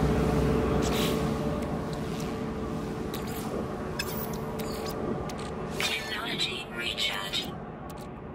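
Soft interface clicks and beeps sound.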